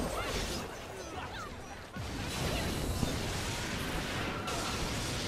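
Game music and effects play throughout.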